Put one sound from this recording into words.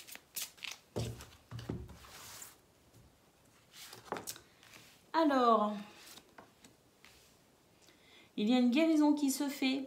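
Cards are laid down on a cloth-covered table with soft taps.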